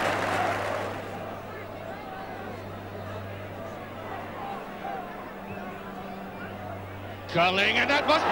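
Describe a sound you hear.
A crowd murmurs in a stadium.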